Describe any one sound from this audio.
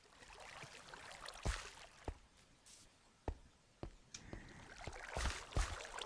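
Game footsteps tread on stone.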